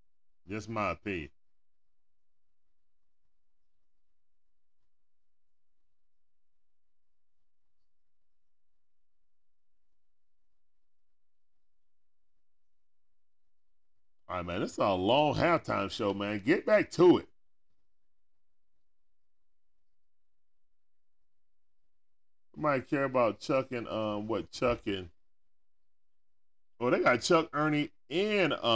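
A man speaks with animation into a close microphone, in short bursts with long pauses.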